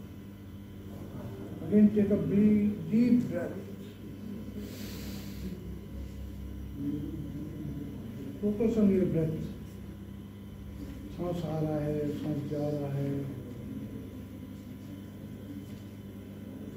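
A ceiling fan whirs steadily overhead.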